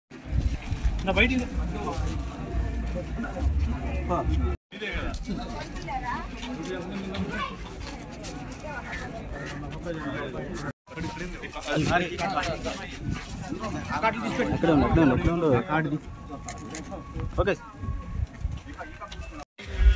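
Several men talk over one another close by, outdoors.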